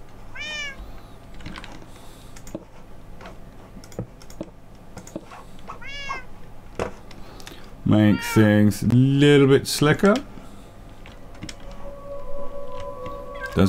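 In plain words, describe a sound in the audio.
Footsteps tap softly on a wooden ladder during a climb.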